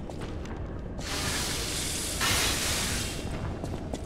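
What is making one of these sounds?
A weapon crackles with a sharp, hissing burst.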